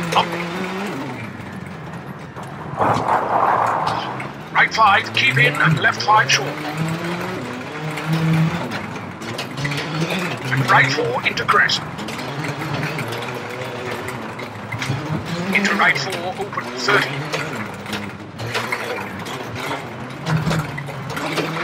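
A rally car engine revs hard, rising and falling as gears change.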